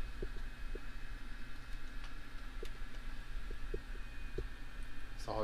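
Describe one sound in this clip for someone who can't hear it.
Small plastic clicks sound as buttons on a device are pressed.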